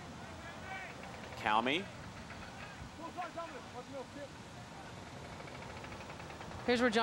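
Young men shout loudly across an open field.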